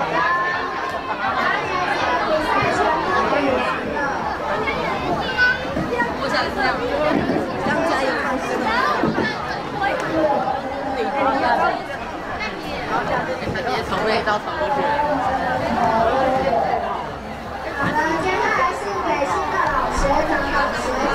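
A crowd of children chatter and shout excitedly outdoors.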